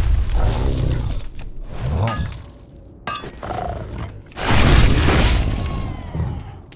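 A huge creature crashes heavily to the ground.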